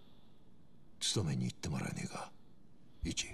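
A man speaks in a low, tense voice close by.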